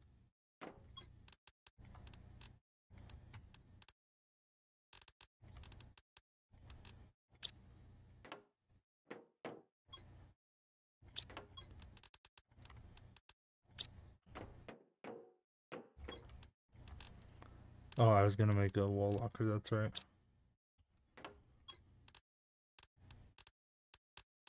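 Short soft clicks sound as items are moved between slots.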